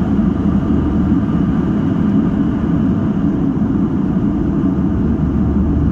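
Jet engines roar steadily, heard from inside an airliner cabin.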